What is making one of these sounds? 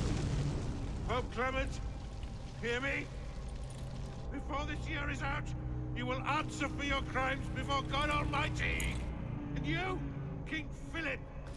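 An elderly man shouts in a loud, strained voice.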